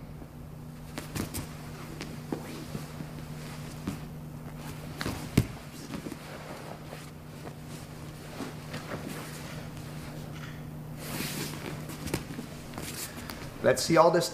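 Heavy fabric rustles and bodies thump softly on a padded mat.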